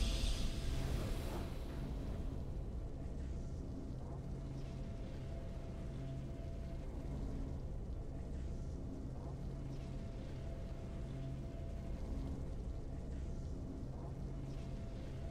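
Triumphant game music plays steadily.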